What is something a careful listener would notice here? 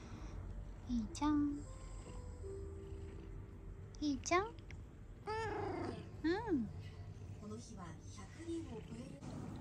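A cat meows several times close by.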